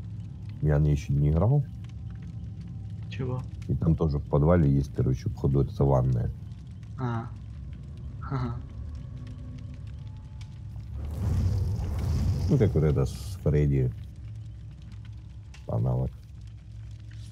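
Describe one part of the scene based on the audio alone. A campfire crackles steadily.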